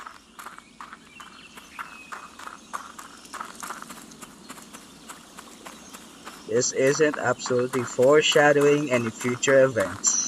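Footsteps crunch on dry leaves and earth.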